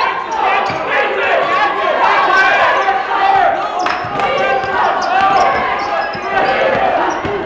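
A basketball bounces on a hard wooden floor.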